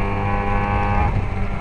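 A racing car engine drops sharply in pitch as a gear changes.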